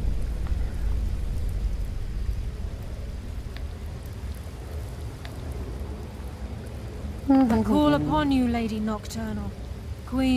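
Water flows with a low, steady rush.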